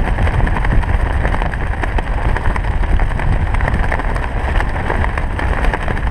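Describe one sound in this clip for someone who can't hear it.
Strong wind roars and buffets against a microphone during free fall.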